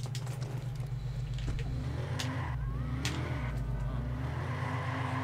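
A muscle car engine rumbles as the car drives off.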